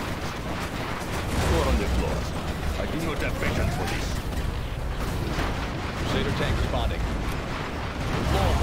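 Explosions boom and rumble repeatedly.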